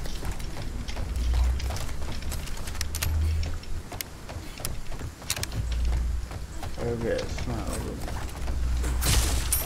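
Footsteps thud on wooden planks.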